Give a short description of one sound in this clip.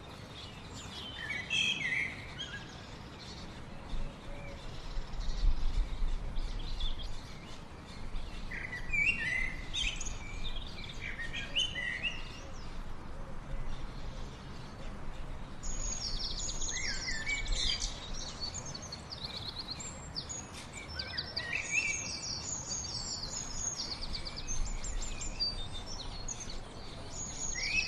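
A small bird chirps and twitters repeatedly nearby.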